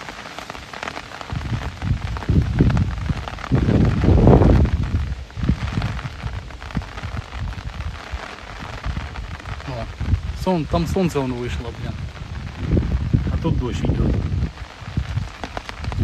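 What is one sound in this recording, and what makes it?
Light rain patters on an umbrella and water.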